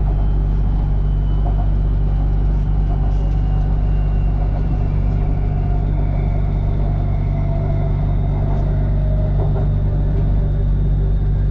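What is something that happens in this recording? A train's motor whines and slowly falls in pitch as it slows.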